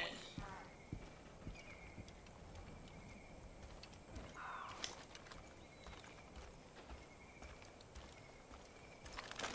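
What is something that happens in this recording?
Footsteps crunch softly on a dirt path.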